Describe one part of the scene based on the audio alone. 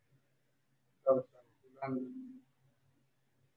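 An elderly man speaks calmly and briefly over an online call.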